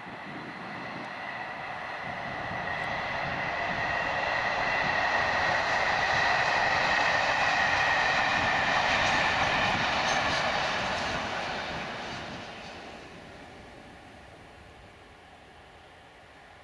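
A diesel train rumbles past on the rails, growing louder and then fading away.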